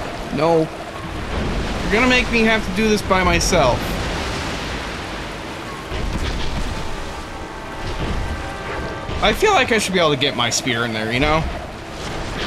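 A second man talks and laughs into a close microphone.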